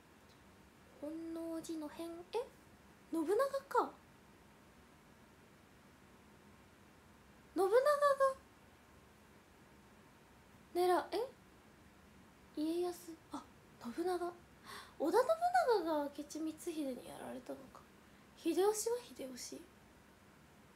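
A young woman talks close to a microphone in short, lively bursts with pauses between them.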